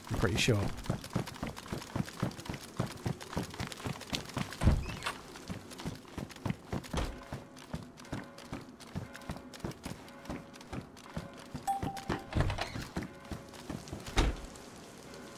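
Footsteps walk quickly over hard ground and up stairs.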